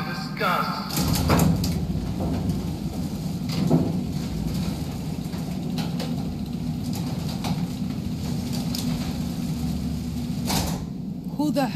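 A metal roller shutter rattles and rumbles as it rolls up.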